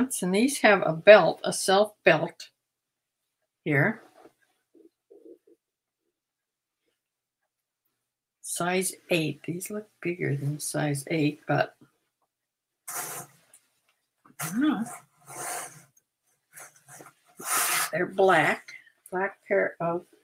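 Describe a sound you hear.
Fabric rustles as a garment is handled.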